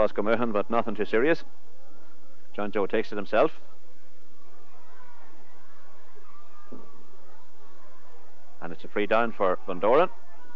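A crowd murmurs faintly outdoors.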